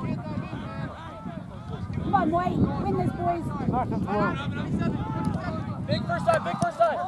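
Young players shout and call to one another across an open field.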